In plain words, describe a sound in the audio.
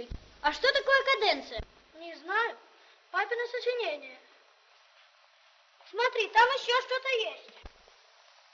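Two boys talk to each other in lively, high voices.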